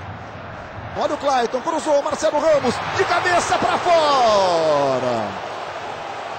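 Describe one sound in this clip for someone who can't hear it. A large crowd roars loudly.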